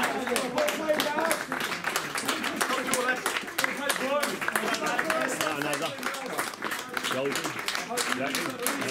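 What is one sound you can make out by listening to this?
Hands clap in scattered applause.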